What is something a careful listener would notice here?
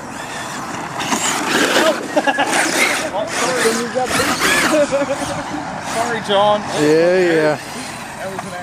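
A small electric motor whines and revs.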